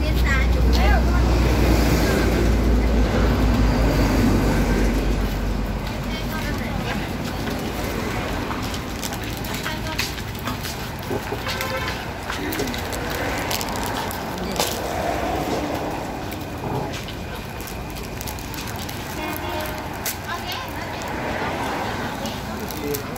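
A knife scrapes and taps on crisp rice cakes.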